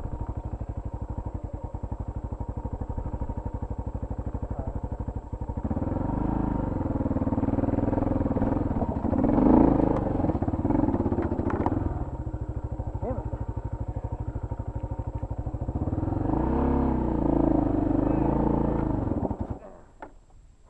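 A motorcycle engine idles with a steady, rhythmic chug, revving louder at times.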